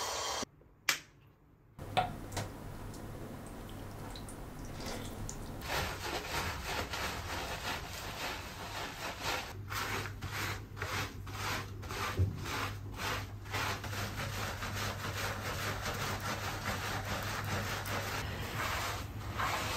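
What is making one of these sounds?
A brush scrubs wet, soapy fur.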